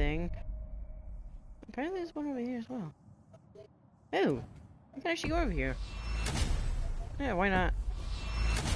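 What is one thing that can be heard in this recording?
Short chiming menu tones sound in quick bursts.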